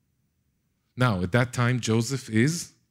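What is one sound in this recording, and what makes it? A middle-aged man speaks with animation through a microphone in a large hall.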